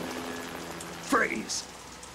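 A man shouts sharply.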